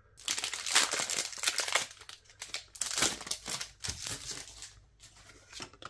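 A foil wrapper crinkles and tears as it is opened.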